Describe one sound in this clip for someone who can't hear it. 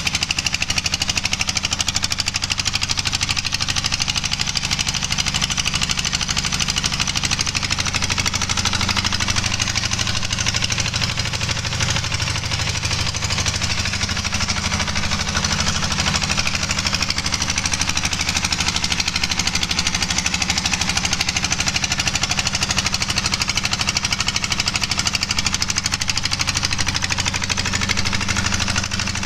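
A diesel engine runs with a steady, fast rattling chug close by.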